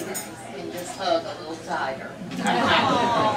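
A middle-aged woman speaks.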